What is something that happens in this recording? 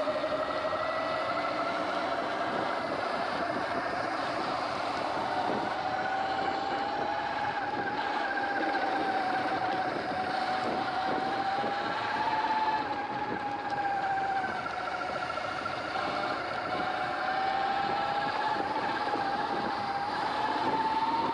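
An electric motor whines steadily, rising and falling in pitch.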